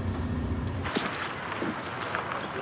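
Footsteps splash on wet ground.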